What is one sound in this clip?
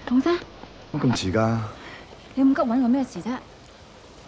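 A young woman speaks with surprise.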